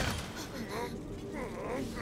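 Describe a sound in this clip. A man shouts urgently.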